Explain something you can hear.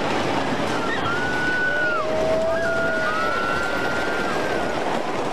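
A young woman screams loudly.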